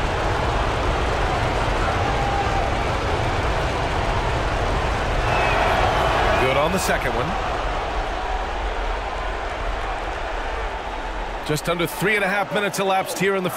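A large crowd murmurs and cheers in an echoing arena.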